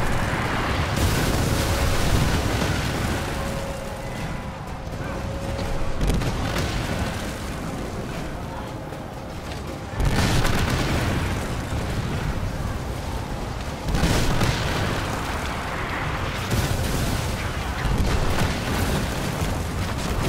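Cannonballs explode against stone walls.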